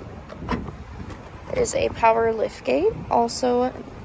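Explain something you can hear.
A car's tailgate lifts open.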